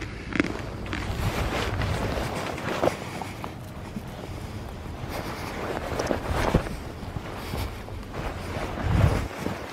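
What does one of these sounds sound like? Goats trot across grass with soft thudding hooves.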